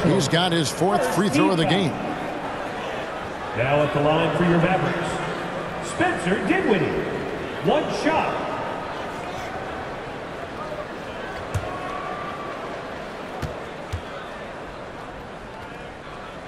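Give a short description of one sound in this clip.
A crowd murmurs in a large arena.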